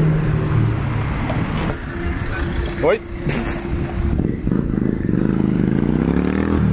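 Traffic hums steadily along a busy street outdoors.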